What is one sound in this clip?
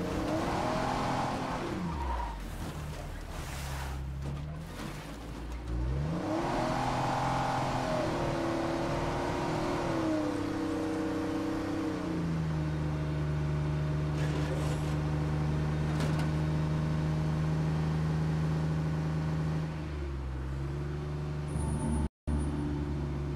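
A vehicle engine revs up and down, then hums steadily at speed.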